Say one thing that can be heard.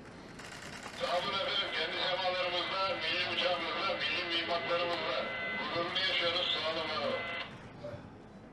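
A man's voice answers through a two-way radio's speaker.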